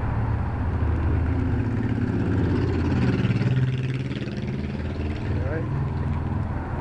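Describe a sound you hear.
A motorcycle engine rumbles as it rides past on the street.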